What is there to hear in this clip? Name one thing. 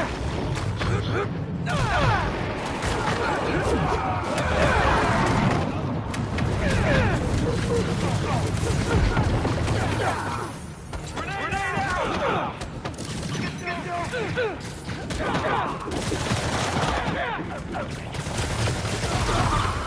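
Punches and kicks thud in a brawl, with heavy blows and crashes.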